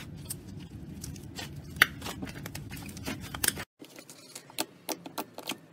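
Hands squish and knead slime with wet, crackling pops.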